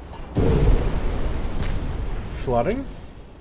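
A deep explosion booms and rumbles away.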